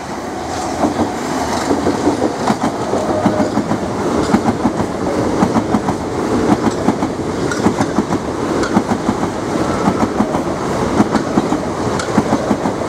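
Train wheels clack rhythmically over rail joints.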